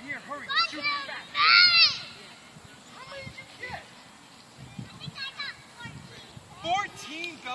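Young children shout and squeal playfully outdoors.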